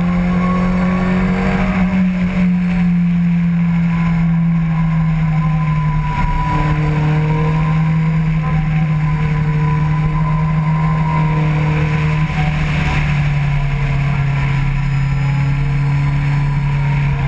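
A motorcycle engine drones steadily at high speed, its pitch shifting slightly as the rider changes speed.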